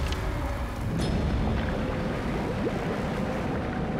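Thunder cracks and rumbles loudly as lightning strikes.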